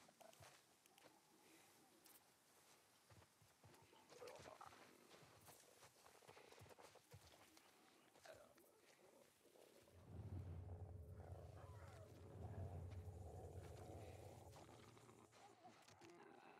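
Footsteps rustle softly through grass and dry leaves.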